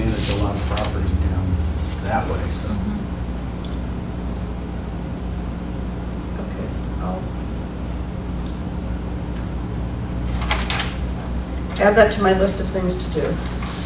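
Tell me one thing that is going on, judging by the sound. A woman speaks calmly at a distance in a room with some echo.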